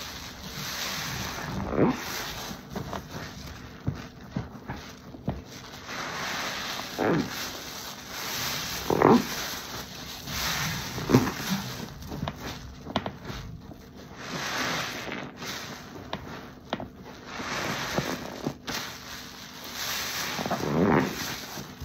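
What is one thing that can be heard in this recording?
Gloved hands squelch a sponge through thick foam.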